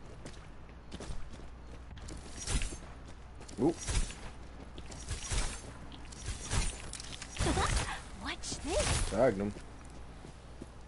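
A light gun fires in short bursts.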